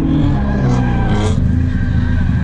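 Tyres squeal as a car slides through a turn.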